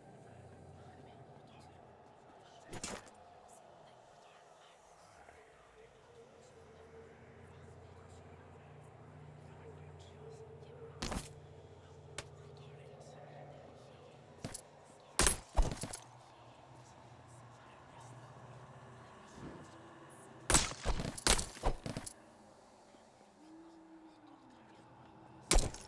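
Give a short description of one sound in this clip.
Soft game music plays steadily.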